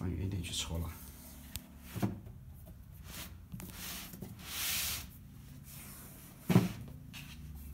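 A cardboard drawer box slides open with a soft scrape.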